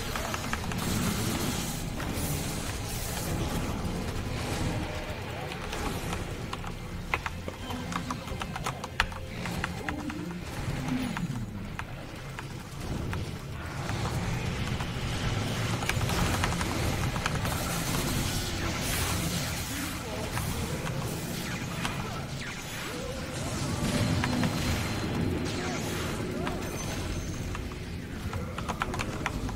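Weapons and spells strike with sharp hits and zaps.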